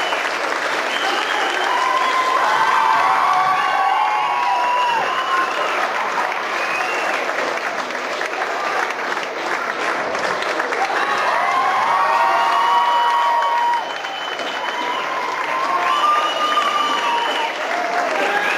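Children sing together loudly in a large echoing hall.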